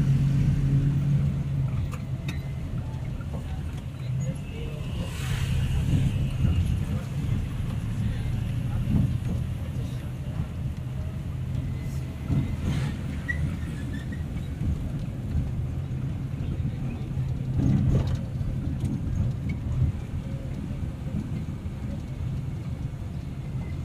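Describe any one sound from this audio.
A car engine hums steadily from inside the car as it drives.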